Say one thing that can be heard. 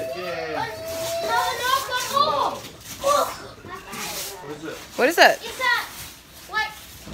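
Young children talk and shout excitedly close by.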